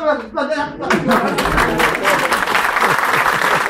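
An audience of men laughs and cheers loudly.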